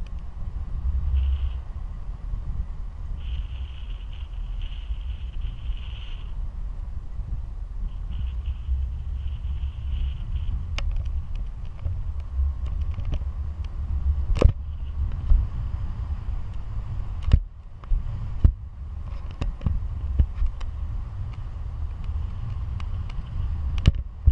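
Strong wind rushes and buffets loudly against a microphone outdoors.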